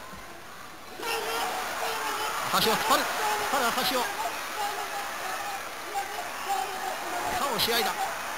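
A large crowd roars and cheers in a big echoing hall.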